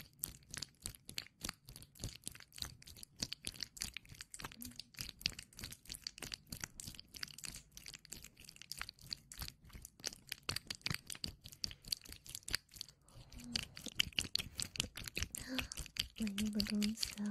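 Soft brushes rub and tap close against a microphone in quick, crisp strokes.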